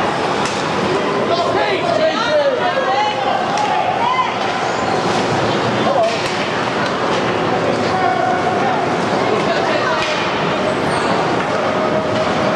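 A crowd of spectators shouts and cheers in a large echoing rink.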